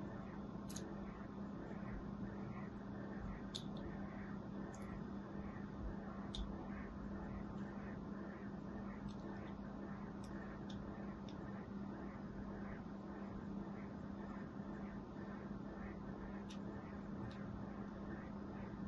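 A thin blade scrapes softly and rhythmically across a bar of soap.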